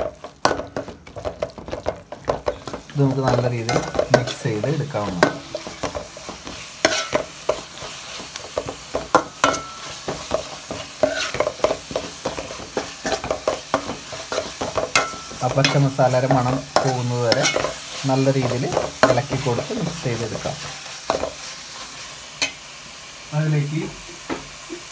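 A metal spoon scrapes and clinks against a metal pot while stirring food.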